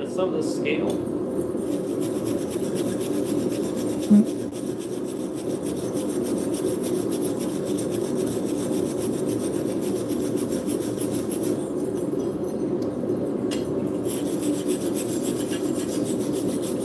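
A hammer taps rapidly on metal.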